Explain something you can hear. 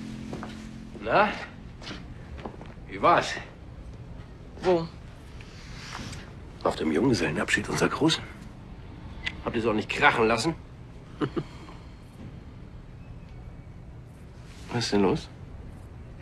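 A man speaks softly, close by.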